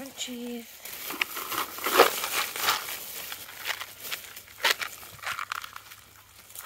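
A dog licks food from a crinkling foil wrapper close by.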